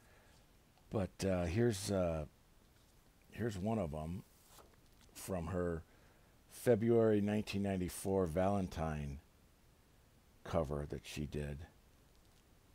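A man talks calmly and closely.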